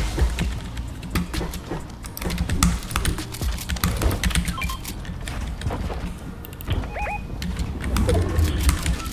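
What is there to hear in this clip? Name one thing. Building pieces snap into place with rapid clattering knocks.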